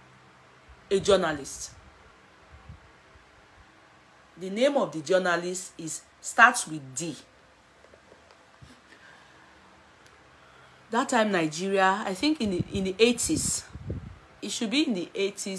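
A woman speaks with animation close to a microphone, in short bursts with pauses.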